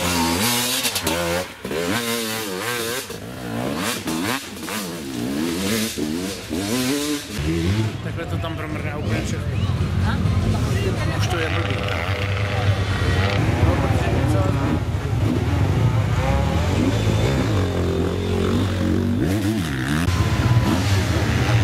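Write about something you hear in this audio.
A motorcycle engine revs up and down loudly, close by.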